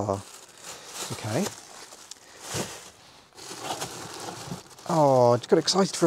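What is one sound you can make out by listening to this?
Plastic bags rustle and crinkle as a hand rummages through them.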